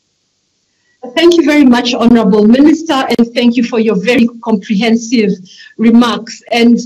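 An older woman speaks calmly through an online call.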